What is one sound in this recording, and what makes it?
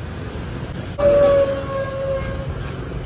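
A bus engine idles nearby.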